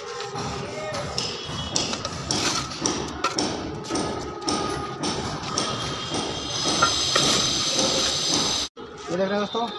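A steel trowel taps and scrapes on brick.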